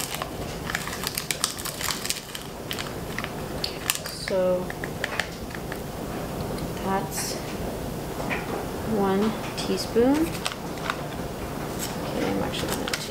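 A small paper packet rustles and crinkles in hands.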